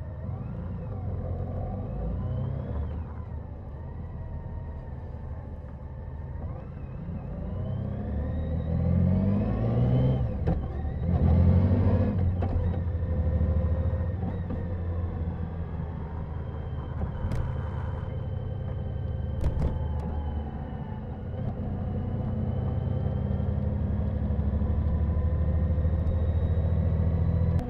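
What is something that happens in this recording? A motorcycle engine hums and revs as it rides, with pitch rising and falling.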